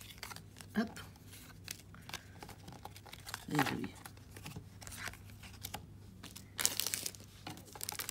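Trading cards are laid onto a table.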